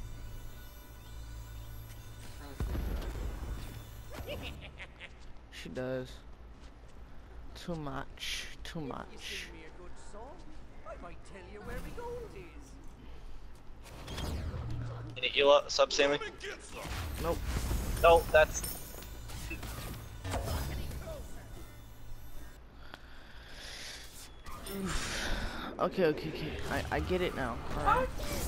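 Video game spell blasts and weapon swooshes burst again and again.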